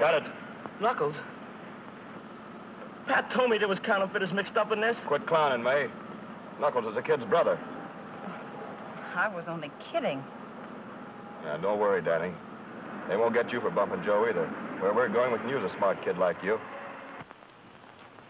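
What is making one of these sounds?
A young man speaks in an agitated voice nearby.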